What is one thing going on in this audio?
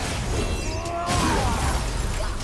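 Ice shatters with a loud burst.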